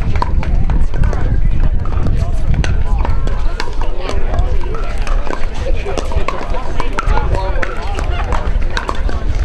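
Paddles pop sharply against plastic balls on several courts.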